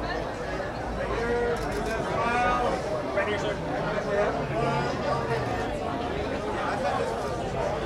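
A crowd of men and women chatters.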